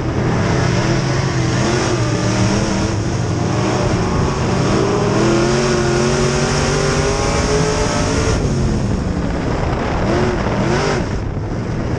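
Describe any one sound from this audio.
A race car engine roars loudly up close, revving up and down.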